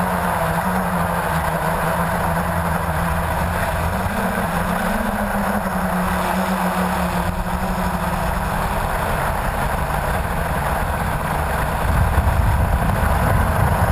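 A drone's propellers whir with a steady buzzing hum.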